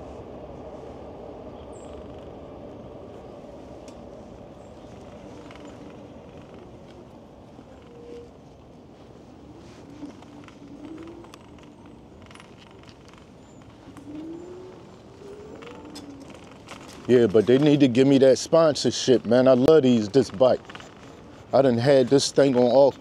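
An electric bike's tyres roll over a paved path.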